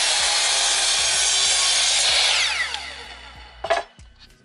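A power mitre saw whines loudly as it cuts through wood, then spins down.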